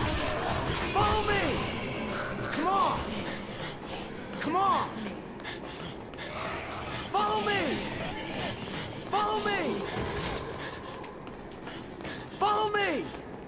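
Zombies moan and groan nearby.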